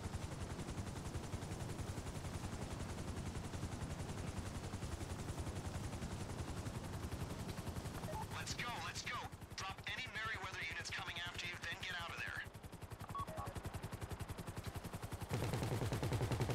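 A helicopter's rotor thumps steadily up close.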